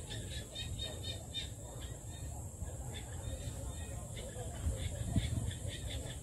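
A bird chirps in a series of short, high calls.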